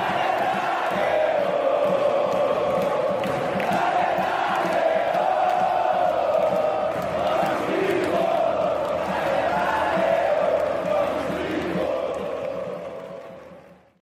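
A large crowd sings and chants loudly in unison.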